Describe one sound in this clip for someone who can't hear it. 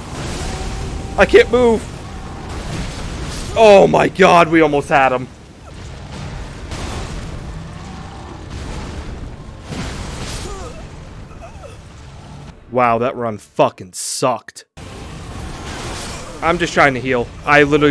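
Heavy weapons clash and crash in a battle.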